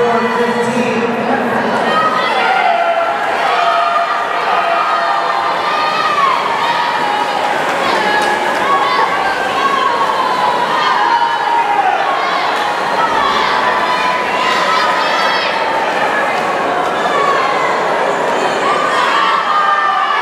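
A crowd of young people cheers and shouts in an echoing pool hall.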